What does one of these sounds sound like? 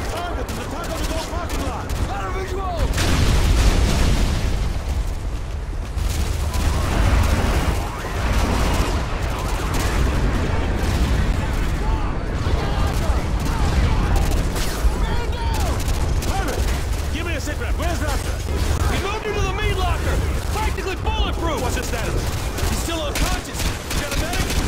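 Explosions boom and rumble deeply.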